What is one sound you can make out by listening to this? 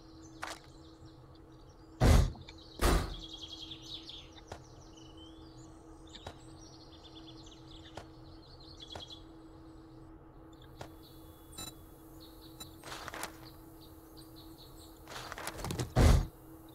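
Short clicks tick as menu items are picked.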